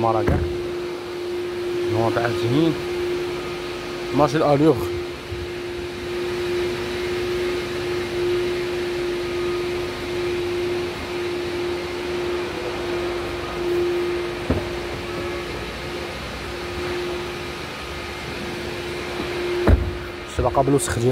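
A man speaks briefly in short bursts close to the microphone.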